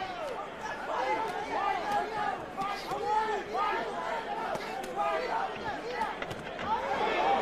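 Boxing gloves thud against a body.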